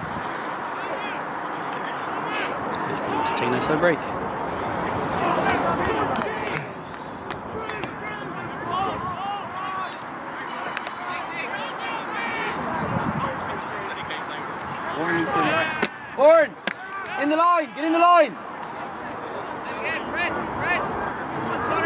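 Players shout and call to each other across an open field, outdoors and at a distance.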